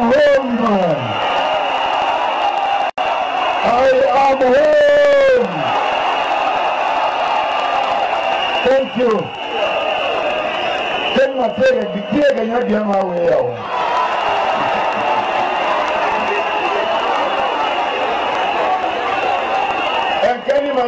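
A large crowd cheers and sings along steadily.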